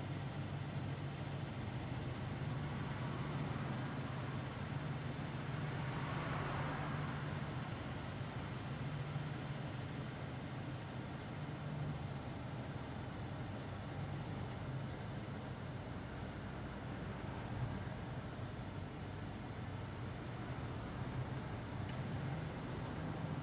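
Tyres roll on the road with a steady rushing noise.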